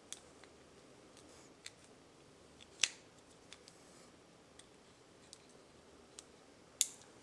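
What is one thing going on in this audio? Small metal parts click and tap under fingers.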